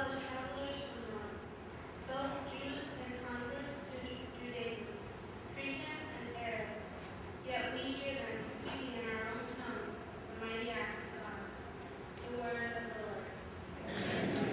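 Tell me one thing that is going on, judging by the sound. A man speaks calmly through a microphone, echoing in a large hall.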